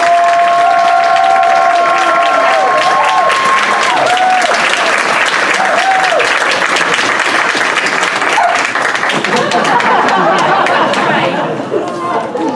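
A crowd applauds loudly in a room.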